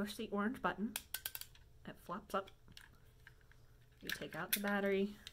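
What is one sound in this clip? Small plastic parts click as a young woman handles them.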